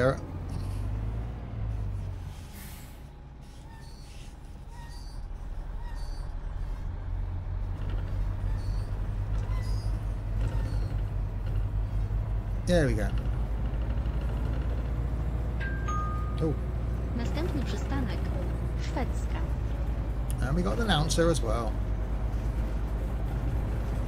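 A bus engine hums low and steady as the bus drives along.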